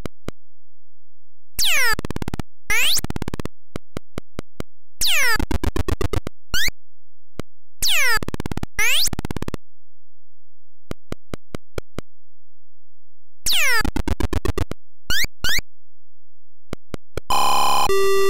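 Short electronic blips from a retro computer game tick steadily.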